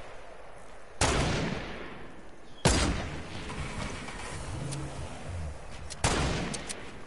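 A rifle fires sharp, loud shots that ring out and fade.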